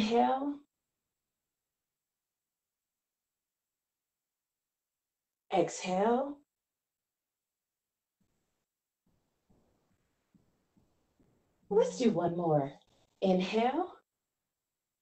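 A woman speaks calmly in short phrases over an online call, with long pauses between them.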